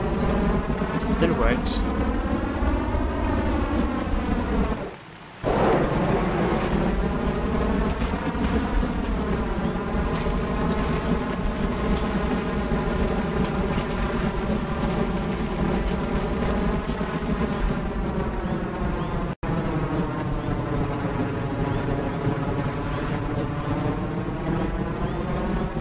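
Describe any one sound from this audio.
Jet engines roar steadily, their pitch slowly rising and falling.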